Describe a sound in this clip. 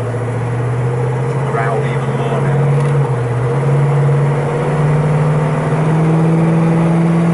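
Tyres roll on a wet road.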